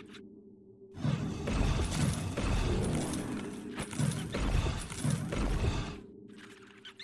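Game hits clash and thud repeatedly.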